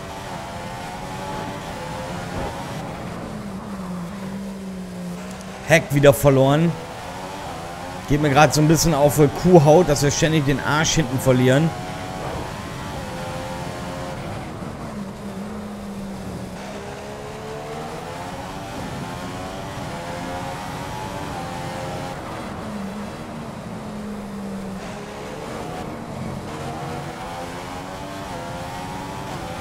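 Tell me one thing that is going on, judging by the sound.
A racing car engine screams, rising and falling in pitch.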